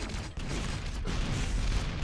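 Gunfire bursts and crackles rapidly.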